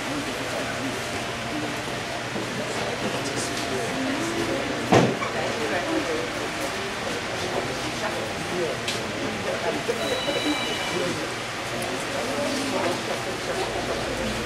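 A crowd of men and women murmurs and talks quietly nearby.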